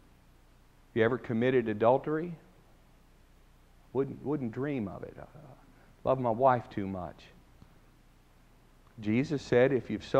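A middle-aged man speaks with emphasis into a microphone, in short bursts with pauses, in a room with a slight echo.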